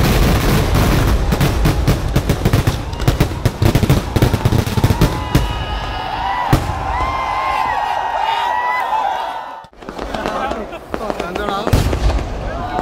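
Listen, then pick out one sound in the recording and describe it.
Fireworks explode in a rapid, booming barrage.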